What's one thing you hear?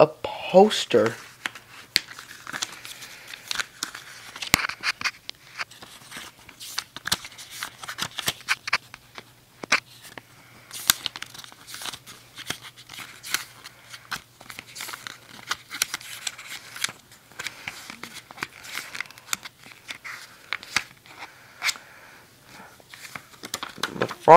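A plastic case clicks and rattles as hands handle it.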